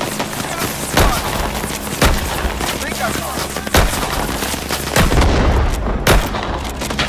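Gunshots crack out sharply.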